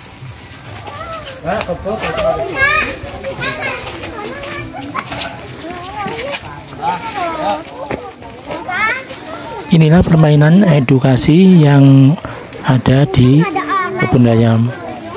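Young children chatter and call out outdoors.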